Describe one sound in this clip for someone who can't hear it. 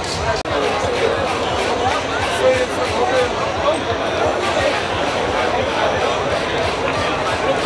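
Loud dance music with a thumping bass beat plays outdoors.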